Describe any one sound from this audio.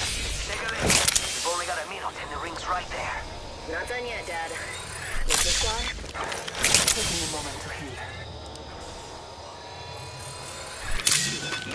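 A medical syringe clicks and hisses as it is used.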